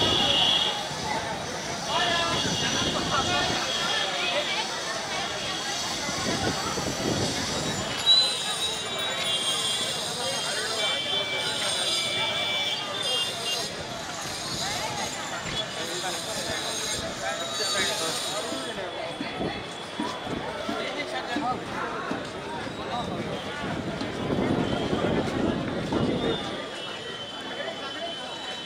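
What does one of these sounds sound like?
A crowd of men and women chatters and murmurs all around outdoors.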